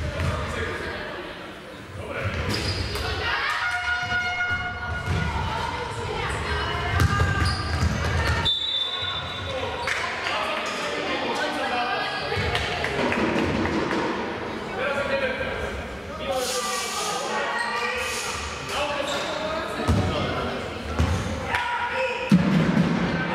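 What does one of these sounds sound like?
Young women players shout to each other across the court.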